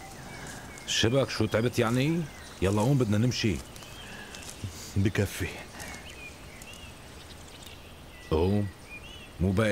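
A middle-aged man speaks in a low, serious voice, close by.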